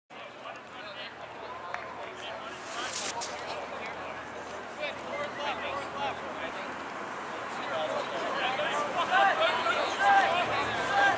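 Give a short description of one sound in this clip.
Several young men shout and call out to each other across an open field.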